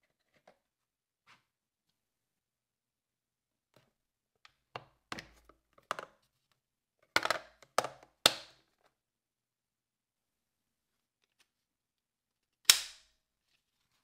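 Plastic toy parts click and clatter as hands handle them.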